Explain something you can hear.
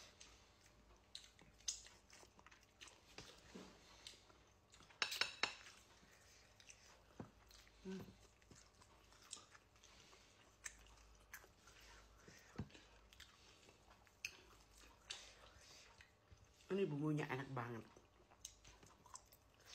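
A woman chews and smacks her lips close up.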